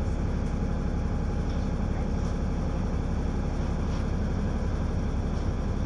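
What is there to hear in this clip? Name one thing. A car drives past slowly.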